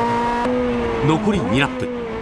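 Tyres squeal on the track.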